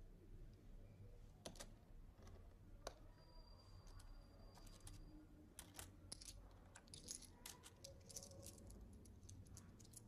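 Small objects click and tap against a table.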